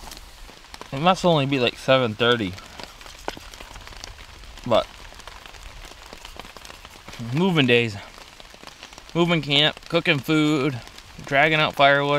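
A man speaks calmly and close by, in short bursts.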